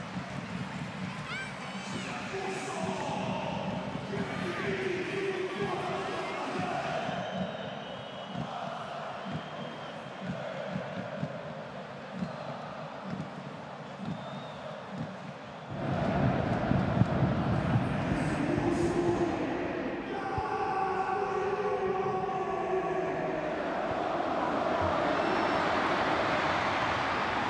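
A large crowd cheers and chants in an open stadium.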